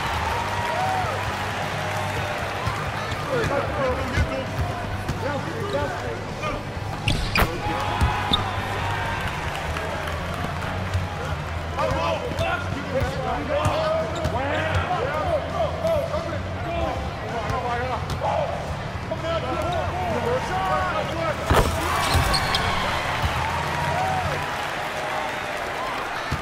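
A large crowd murmurs steadily in a big arena.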